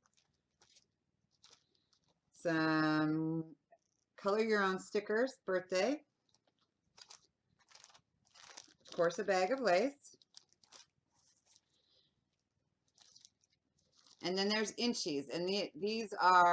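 Paper rustles in a woman's hands.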